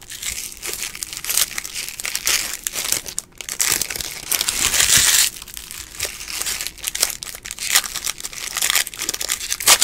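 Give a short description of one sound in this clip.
Trading cards rustle and slide as hands shuffle through them close up.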